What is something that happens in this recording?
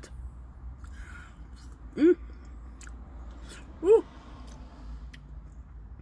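A woman chews and smacks her lips.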